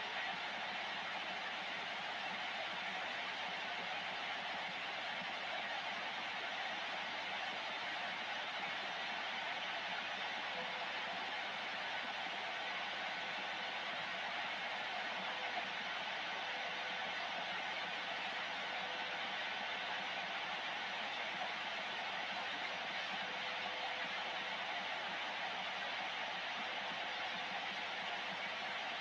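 Radio static hisses steadily from a loudspeaker.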